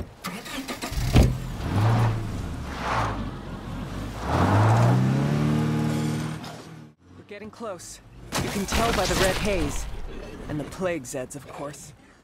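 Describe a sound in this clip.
A car engine revs and hums as a vehicle drives off.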